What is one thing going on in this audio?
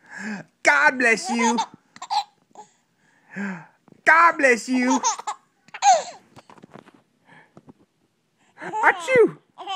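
A baby babbles and squeals happily close by.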